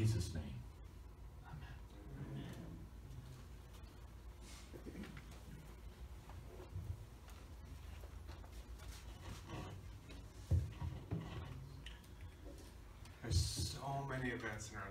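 An elderly man speaks calmly in a quiet room.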